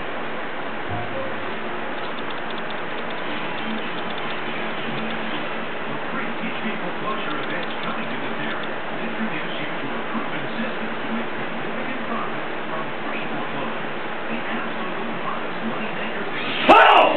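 A computer mouse slides and clicks on a desk.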